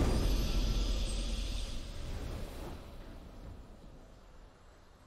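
A triumphant game fanfare swells and fades away.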